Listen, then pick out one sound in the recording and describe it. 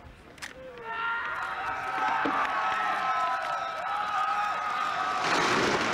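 A crowd far off shouts and whistles.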